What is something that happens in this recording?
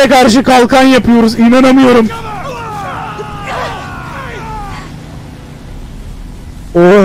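A young man talks loudly and with animation close to a microphone.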